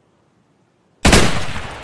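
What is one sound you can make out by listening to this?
A rifle fires a single loud shot that rings out and slowly fades.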